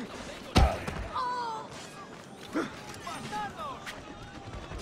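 Men grunt and cry out while fighting.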